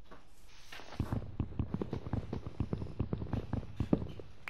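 Quick hollow wooden knocks sound as a tree trunk is struck over and over.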